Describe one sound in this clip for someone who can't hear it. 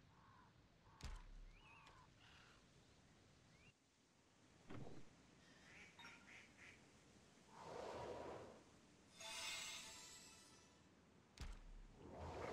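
Short game interface clicks sound as menus open and close.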